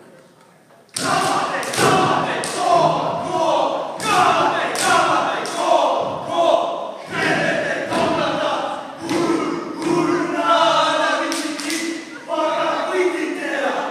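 Young men chant and shout loudly in rhythm in a large echoing hall.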